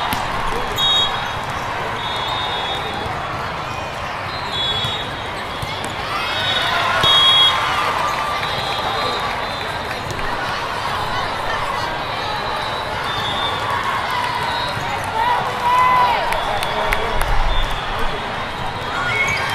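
Shoes squeak sharply on a hard court.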